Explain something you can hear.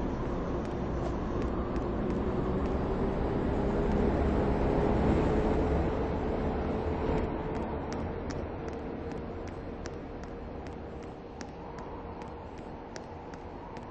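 Train wheels click over rail joints at a steady pace.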